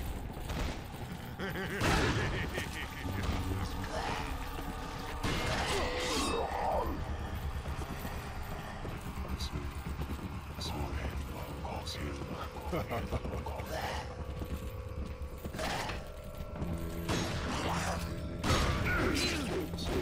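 Shotgun blasts boom loudly.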